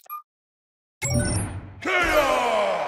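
A heavy electronic impact sounds.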